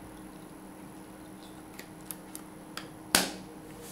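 A small plastic cover snaps shut with a click.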